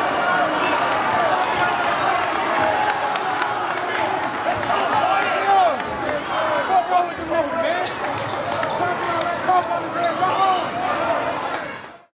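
Young men shout and talk excitedly close by.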